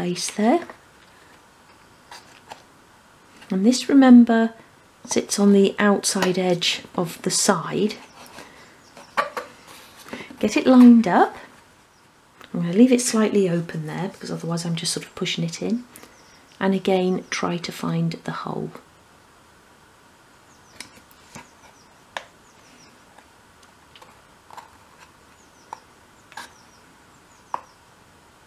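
Small wooden pieces click and tap lightly as they are handled.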